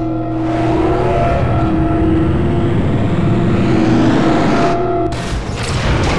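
A heavy lift whirs and hums as it moves.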